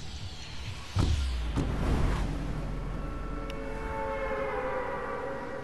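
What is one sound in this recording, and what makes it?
Wind rushes loudly past, starting suddenly.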